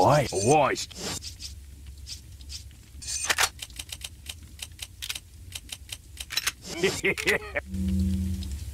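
Menu selections click and chime.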